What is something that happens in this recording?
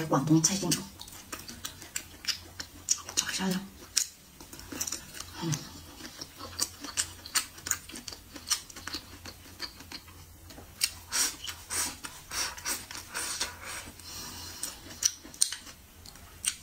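A young woman chews food with loud, wet, crunchy sounds close to a microphone.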